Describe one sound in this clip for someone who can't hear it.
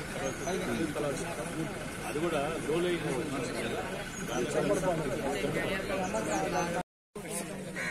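A man speaks calmly to a small group nearby.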